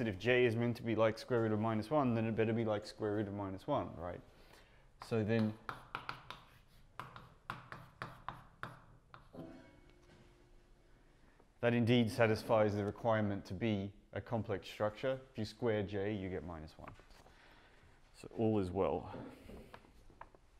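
A man lectures calmly in a room with a slight echo.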